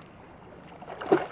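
A fish splashes at the surface of the water close by.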